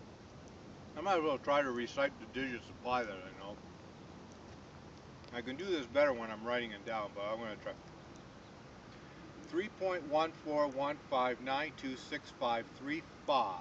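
An elderly man speaks calmly, close by, outdoors.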